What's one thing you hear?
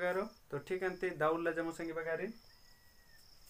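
A young man speaks clearly and calmly close by.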